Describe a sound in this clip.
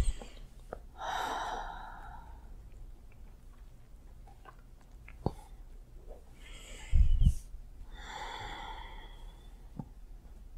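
An elderly woman snores loudly up close, in slow rasping breaths.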